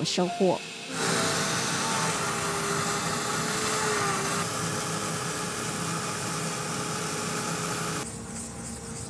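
A rotary grinder whirs steadily as it grinds stone.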